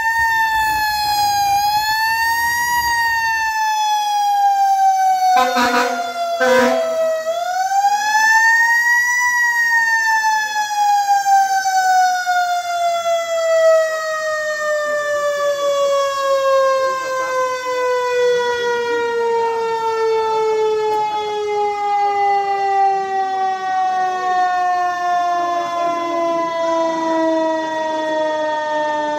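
A fire truck siren wails loudly and slowly winds down.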